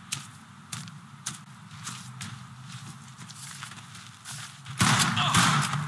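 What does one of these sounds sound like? Footsteps thud quickly on dirt ground.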